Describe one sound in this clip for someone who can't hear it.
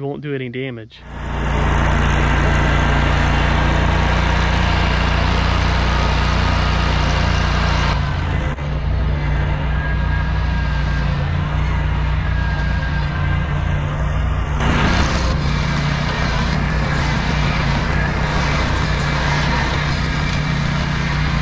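A mower engine drones loudly and steadily.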